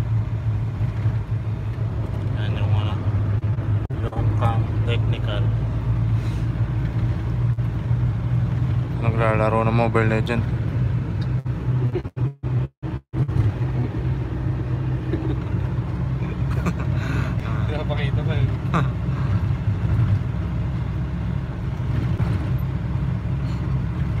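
A vehicle's engine rumbles steadily from inside the cab while driving.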